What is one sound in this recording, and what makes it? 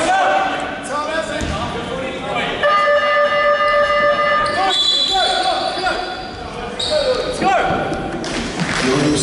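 Sneakers squeak sharply on a wooden court in an echoing hall.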